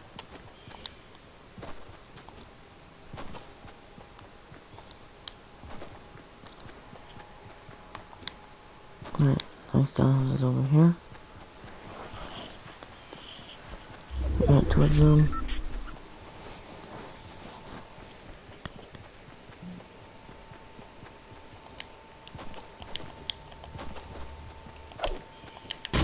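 Quick footsteps patter on hard ground.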